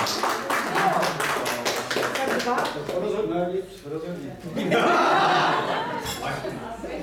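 A woman speaks cheerfully nearby.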